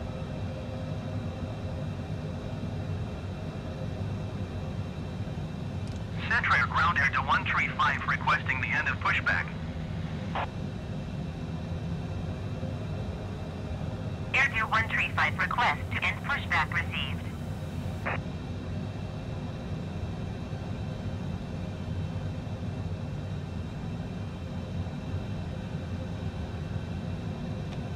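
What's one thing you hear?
A jet engine hums steadily at idle.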